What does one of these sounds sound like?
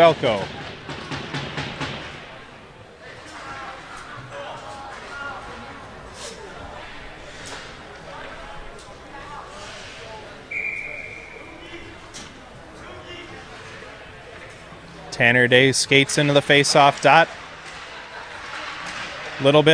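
Skates scrape across the ice in a large echoing rink.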